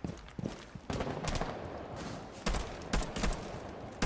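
A rifle fires a few quick, sharp shots.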